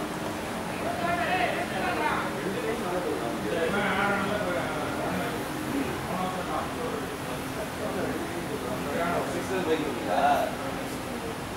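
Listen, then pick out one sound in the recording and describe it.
Men call out to each other in the distance across an open field.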